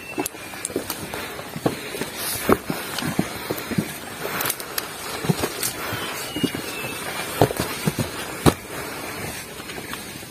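Leaves and branches rustle as hikers push through.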